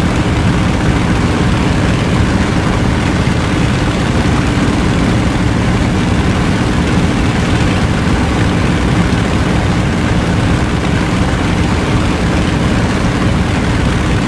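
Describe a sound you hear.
A piston aircraft engine drones loudly and steadily.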